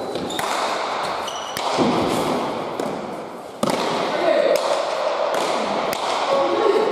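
A ball smacks hard against a wall and rings out through a large echoing hall.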